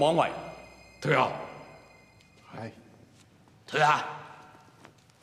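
A man exclaims in short, loud bursts.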